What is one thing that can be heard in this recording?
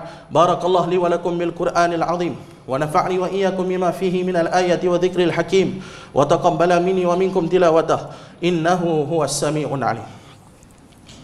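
A man preaches loudly and with passion into a microphone, his voice echoing in a hard room.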